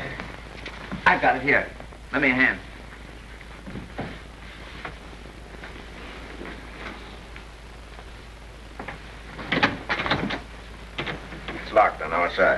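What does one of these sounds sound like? A man speaks in a hushed, tense voice close by.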